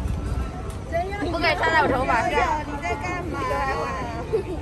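A young girl talks and laughs excitedly close by.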